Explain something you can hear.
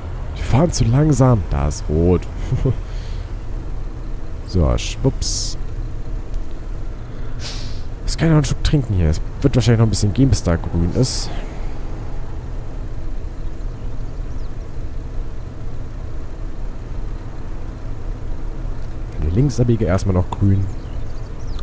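A bus engine hums steadily at low pitch.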